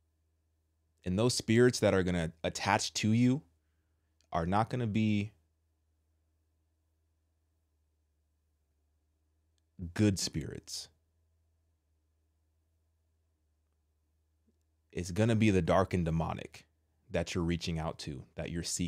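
A man speaks calmly and closely into a microphone, in short bursts with pauses.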